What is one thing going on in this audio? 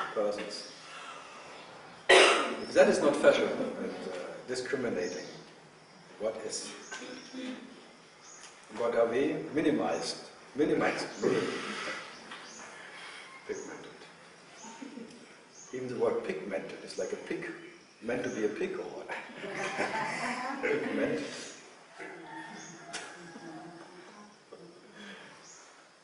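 A middle-aged man speaks calmly and thoughtfully, close by.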